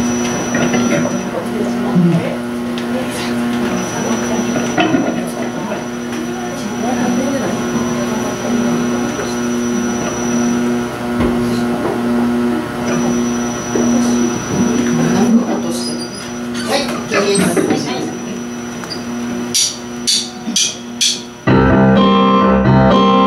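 A live band plays electric guitars and keyboard.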